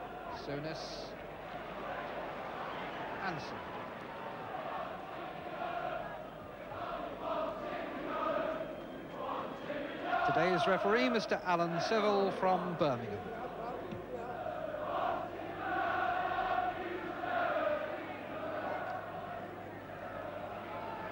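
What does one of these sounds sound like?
A large stadium crowd murmurs and calls out steadily.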